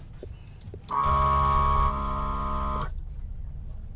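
An electric pump hums steadily for a moment.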